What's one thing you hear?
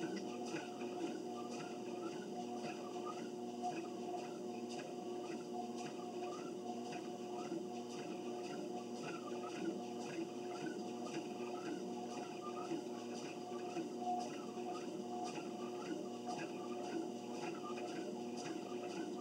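Footsteps thud in a steady rhythm on a treadmill belt.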